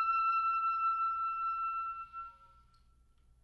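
A clarinet plays a steady high note that fades away.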